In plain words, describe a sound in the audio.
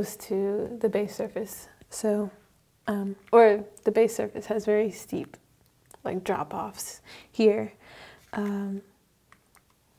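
A young woman speaks clearly and with animation close to a microphone.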